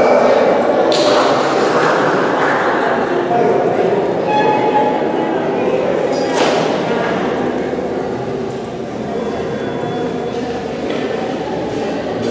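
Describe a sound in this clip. A student string ensemble plays bowed violins, cello and double bass.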